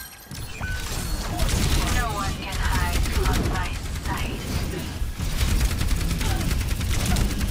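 Rapid energy weapon fire crackles and buzzes.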